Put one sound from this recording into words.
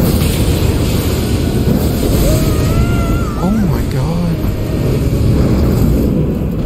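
Heavy crashing and rumbling battle sounds play loudly and steadily.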